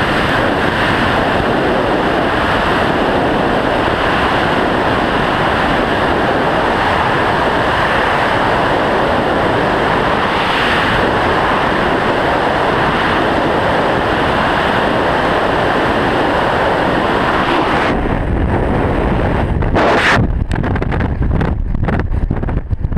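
Rushing wind roars loudly and steadily during a freefall.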